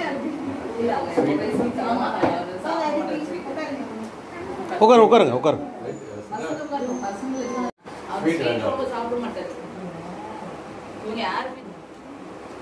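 Several women and children talk and chatter close by.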